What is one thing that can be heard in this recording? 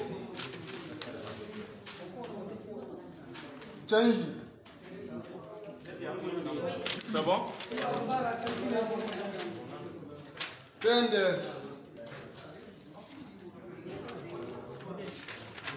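Paper rustles as a man sorts sheets onto plastic sheeting.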